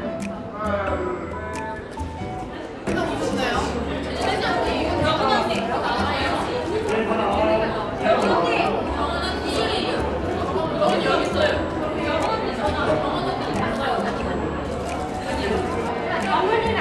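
Young women chat and laugh together in a lively group.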